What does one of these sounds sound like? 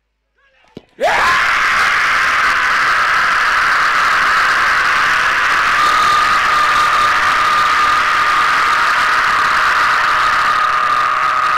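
A large crowd shouts and cheers loudly outdoors.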